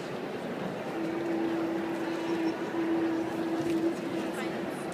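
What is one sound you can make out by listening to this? A group of young women softly hums a steady starting note together.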